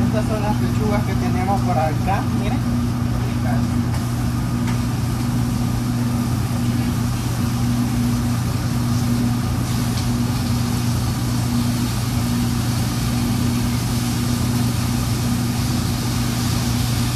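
A kitchen exhaust hood hums steadily.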